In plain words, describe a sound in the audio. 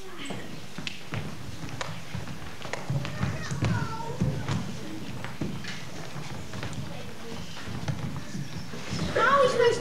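Children's feet thud on a wooden stage in a large hall.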